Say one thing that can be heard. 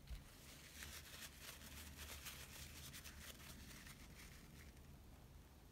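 A squeezed plastic bottle squirts and sputters paint.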